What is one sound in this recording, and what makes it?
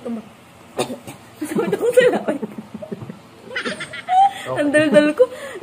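A young woman and a young man laugh.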